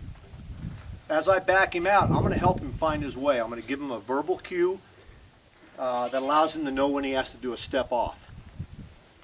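A man speaks calmly and clearly close by.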